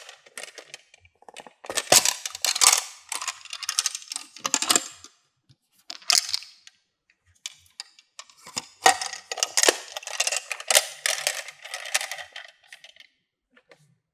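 Plastic parts click and rattle as hands handle a toy case.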